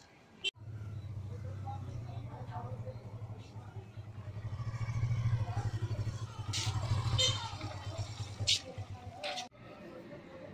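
A motorcycle engine idles nearby with a low rumble.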